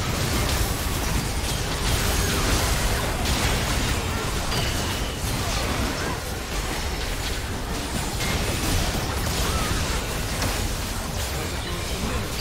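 Magic spells burst, crackle and whoosh in a busy fight.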